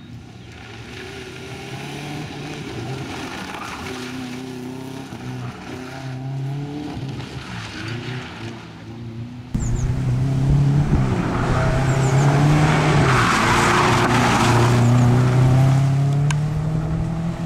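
Tyres skid and crunch on loose gravel.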